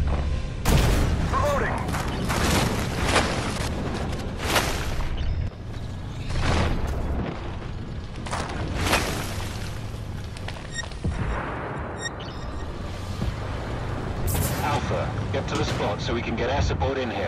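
A tank's engine rumbles low.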